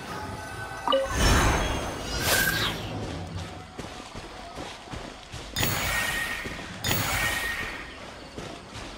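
A magical swirling whoosh rises and fades.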